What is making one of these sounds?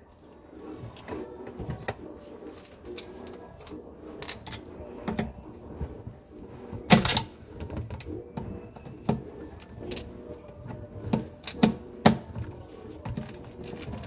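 Gloved hands knock and rub against plastic pipes.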